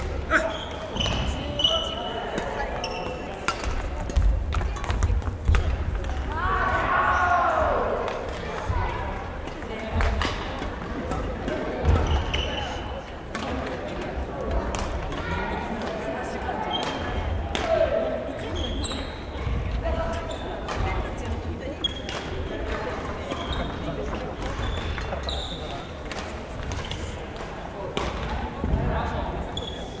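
Men call out and talk at a distance.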